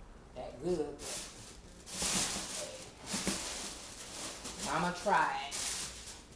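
Tissue paper rustles and crinkles.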